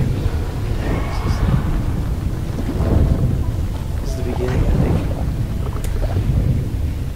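Soft music plays with low, booming notes.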